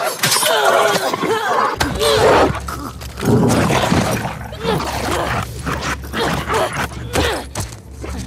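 A young woman grunts and cries out in a struggle.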